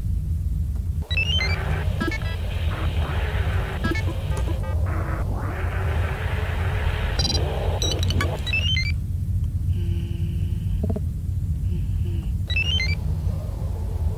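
Short electronic beeps chirp in quick rising runs.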